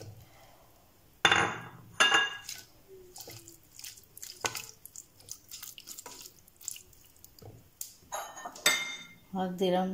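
A wooden spoon scrapes and stirs food in a metal pot.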